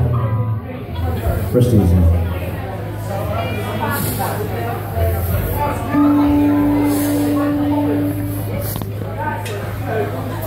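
A live rock band plays loudly, with electric guitars, bass and drums.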